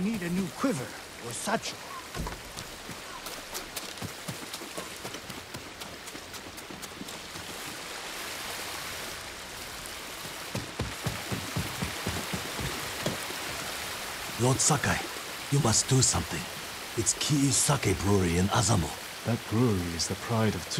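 Water rushes steadily nearby.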